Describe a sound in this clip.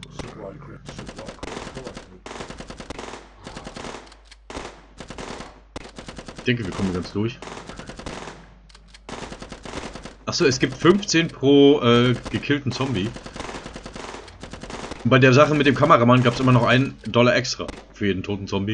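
Gun turrets fire rapid bursts of shots.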